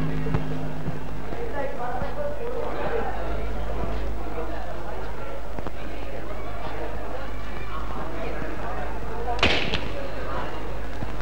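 A crowd of men and women murmurs and chatters outdoors at a distance.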